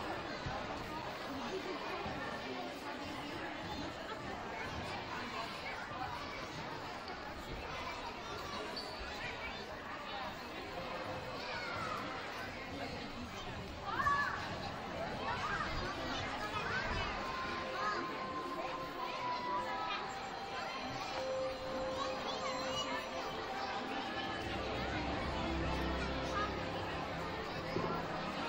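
A crowd of children and adults chatters in a large echoing gym.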